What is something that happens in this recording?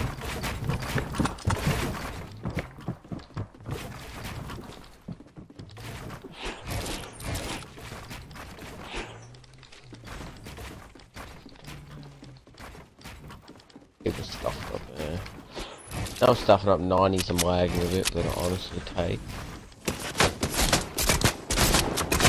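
Game building pieces snap into place in quick bursts.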